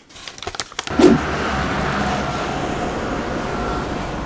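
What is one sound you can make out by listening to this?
Wind rustles through trees outdoors.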